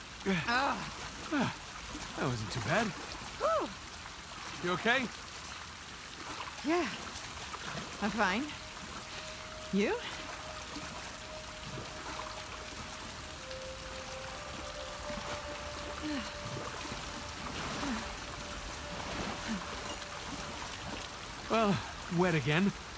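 Water splashes and sloshes as a swimmer paddles.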